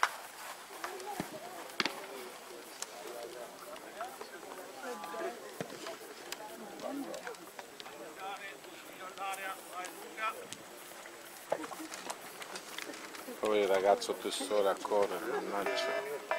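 Young men talk and call out outdoors.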